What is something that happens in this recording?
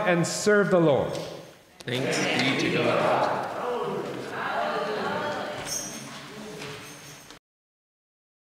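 A man and a woman sing together through microphones in a large echoing hall.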